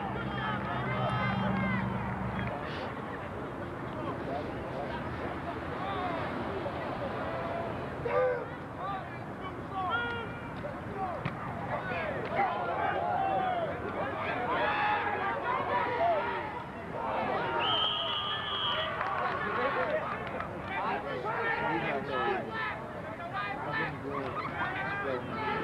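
A crowd of spectators and players shout and cheer outdoors.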